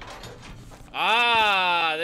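A man exclaims loudly into a close microphone.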